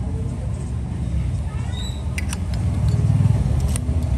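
A metal lighter insert scrapes as it slides into its case.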